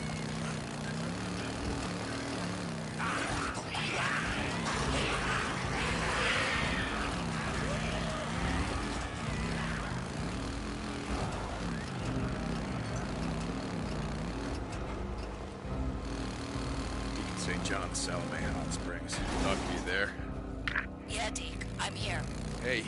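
Tyres crunch over gravel and dirt.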